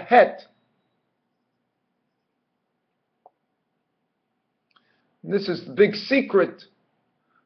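A middle-aged man speaks slowly and calmly, close to a microphone, with long pauses.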